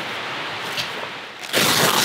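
A hammer taps a metal tent peg into snow.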